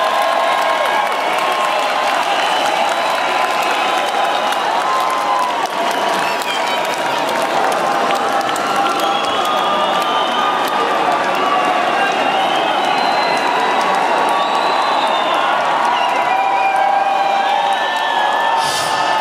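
A large crowd cheers and screams loudly in a big echoing hall.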